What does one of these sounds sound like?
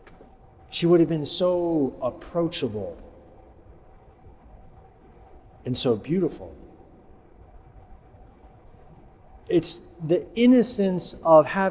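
A middle-aged man speaks calmly and warmly, close to a microphone, with pauses.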